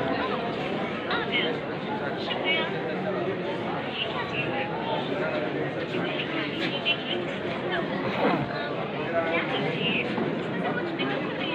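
A large crowd of men and women chatters close by outdoors.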